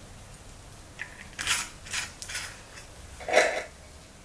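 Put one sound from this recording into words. A metal lid clicks and scrapes as it is screwed onto a glass jar.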